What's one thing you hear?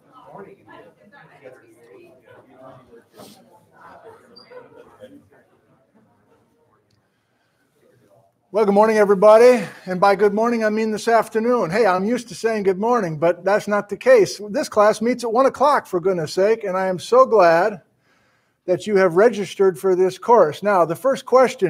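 A man speaks calmly and clearly into a close microphone, as if lecturing.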